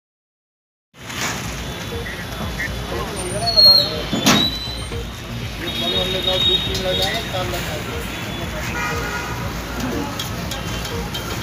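Men talk among themselves nearby amid a bustling crowd.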